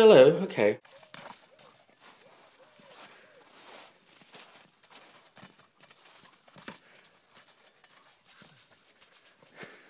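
A dog's paws crunch on snow as it chases a ball.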